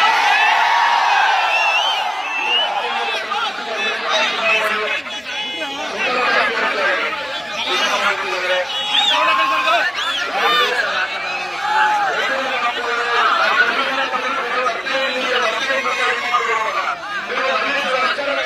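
Many people in a crowd whistle shrilly.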